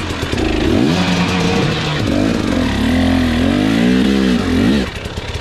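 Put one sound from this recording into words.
Knobby tyres crunch over a dirt trail.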